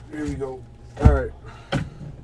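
A hand taps on a cardboard box.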